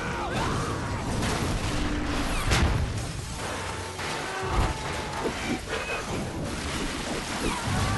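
Debris crashes and tumbles down loudly.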